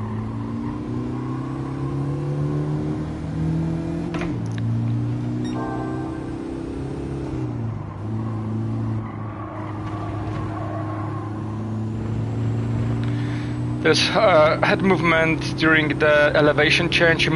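A racing car engine drones and rises and falls in pitch as it shifts gears.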